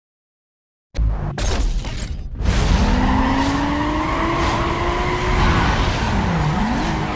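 A car engine revs hard and roars away.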